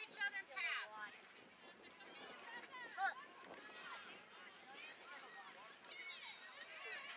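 Children and adults shout and call out at a distance outdoors.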